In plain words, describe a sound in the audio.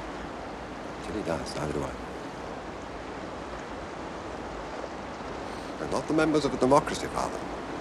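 A man answers in a low, earnest voice nearby.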